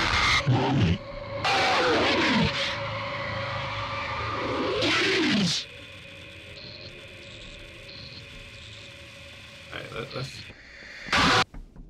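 A television hisses with static.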